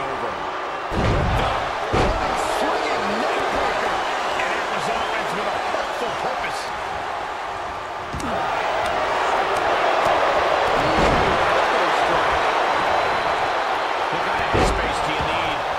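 Heavy bodies slam onto a wrestling ring mat with deep thuds.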